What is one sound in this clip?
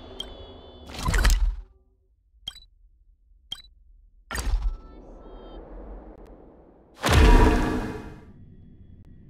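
A soft whoosh sweeps past as a menu opens.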